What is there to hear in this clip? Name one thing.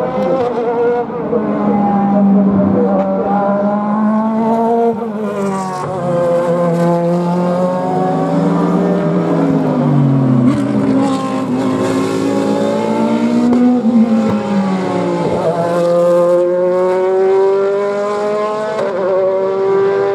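GT race cars scream past at speed, one after another.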